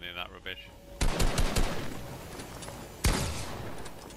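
Rapid gunshots ring out.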